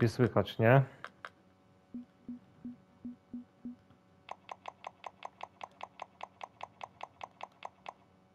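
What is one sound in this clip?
Interface clicks tick in quick, even succession.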